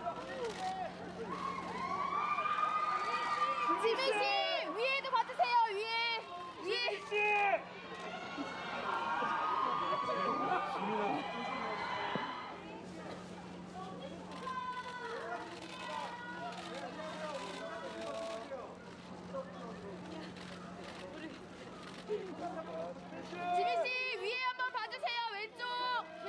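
A crowd of photographers calls out loudly, with men and women shouting over each other.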